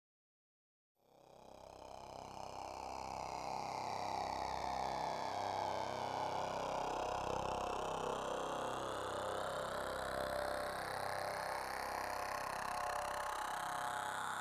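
A synthesizer drone fades in and swells, with slowly sweeping tones.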